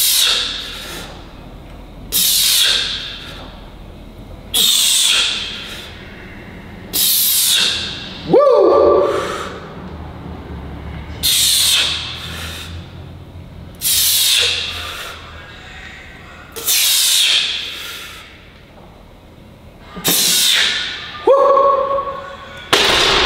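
A man breathes out forcefully in short, regular bursts.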